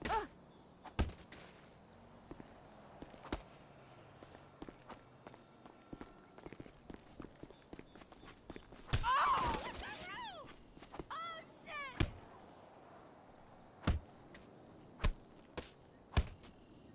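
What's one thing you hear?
Heavy blows land on a body with dull thuds.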